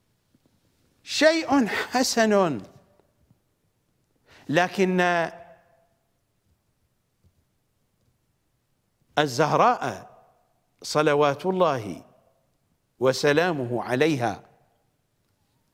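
An elderly man speaks with emphasis into a close microphone, in short bursts with pauses.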